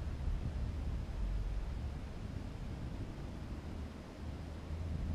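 Wind rumbles and buffets steadily against the microphone, high in the open air.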